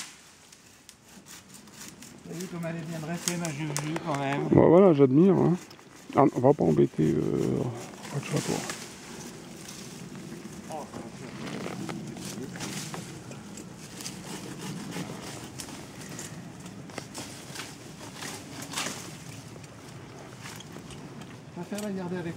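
Horses' hooves thud and crunch on leaf litter.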